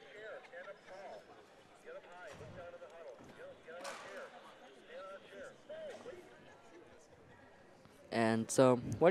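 Girls and women chatter and call out in a large, echoing gym.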